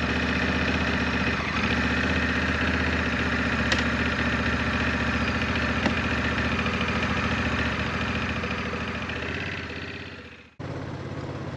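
A motorcycle engine idles with a steady low rumble, then fades away.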